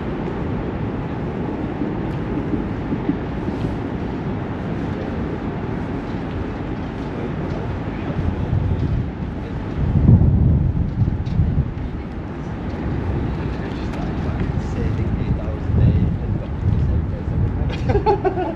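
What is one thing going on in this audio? Wind blows steadily outdoors, rumbling in stronger gusts.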